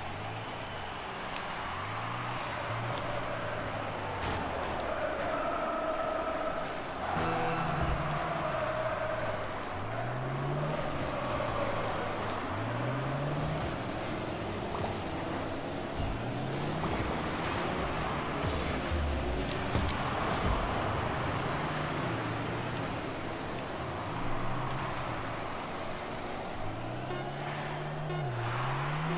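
A car engine revs up and down over and over.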